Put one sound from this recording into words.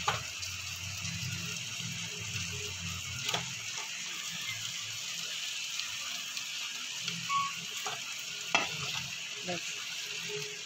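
Fingers squish and scrape food against a metal pot.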